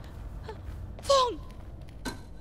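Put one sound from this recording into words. A young woman speaks warmly and happily.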